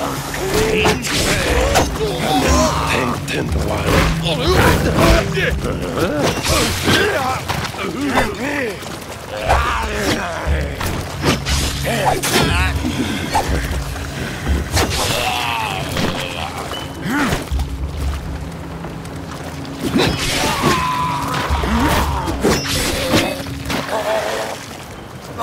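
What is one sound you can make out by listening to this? Swords clash and ring in quick bursts.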